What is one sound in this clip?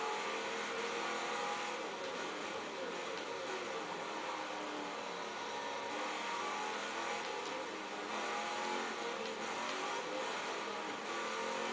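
A racing car engine roars steadily, rising and falling in pitch as it shifts gears.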